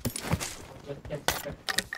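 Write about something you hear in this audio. Footsteps thud on the ground.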